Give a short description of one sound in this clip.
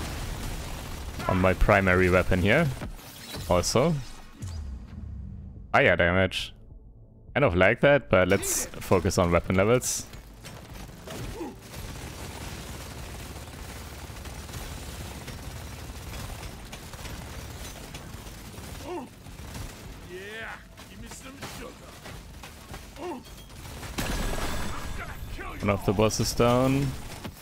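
Blasts burst among swarming creatures.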